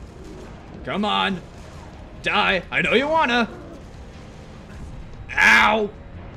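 A large creature roars and growls loudly.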